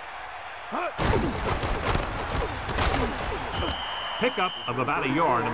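Football players collide with heavy thuds.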